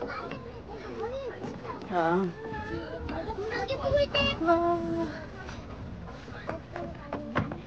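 Young people chat and call out close by, outdoors.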